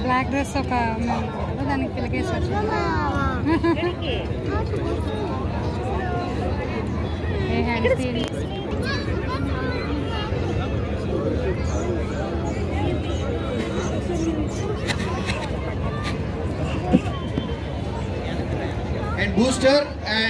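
A large crowd chatters all around in a big, echoing hall.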